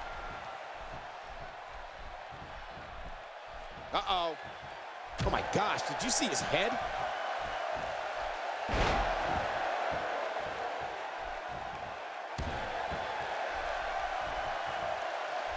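A crowd cheers and murmurs steadily in a large arena.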